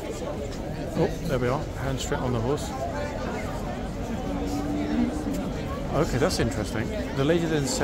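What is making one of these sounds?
An elderly woman talks softly nearby.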